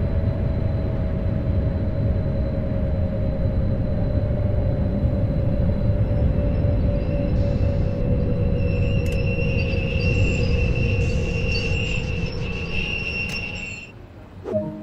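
A train rumbles along the tracks and slows to a stop.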